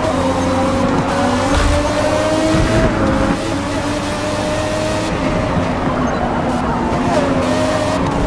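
Other racing cars roar past close by.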